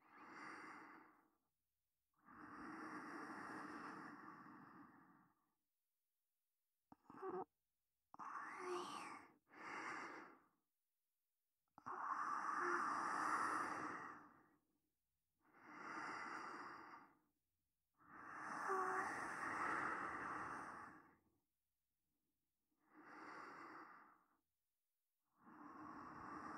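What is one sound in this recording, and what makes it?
Waves wash onto a shore in slow, rising and falling surges.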